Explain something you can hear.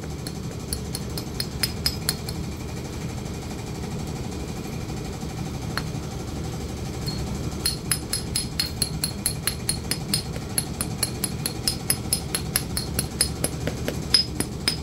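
A knife scrapes and shaves a hoof in quick short strokes.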